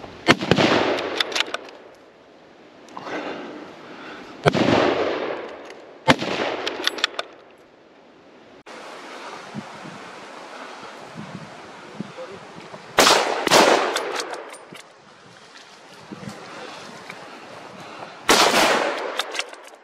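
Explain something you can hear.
Footsteps crunch and rustle through dry, frosty grass close by.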